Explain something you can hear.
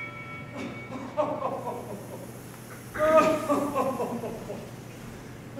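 A man groans and speaks loudly from a stage in a large hall.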